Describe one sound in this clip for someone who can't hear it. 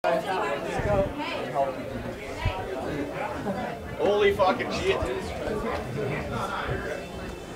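A man talks loudly close by.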